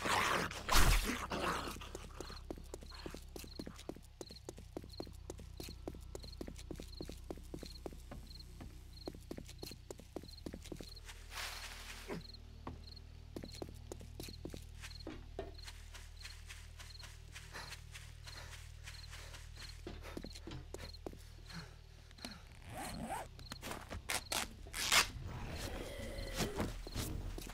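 Footsteps fall at a steady, quick pace on hard ground and grass.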